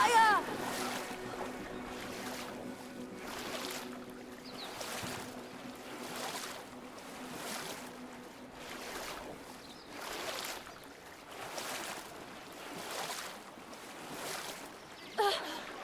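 Water splashes in a steady rhythm as a small swimmer paddles along.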